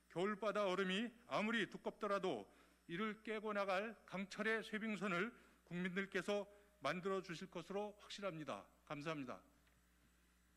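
A middle-aged man speaks calmly and formally into a microphone.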